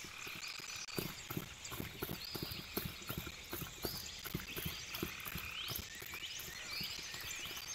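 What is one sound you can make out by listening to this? An animal's paws patter on wet ground.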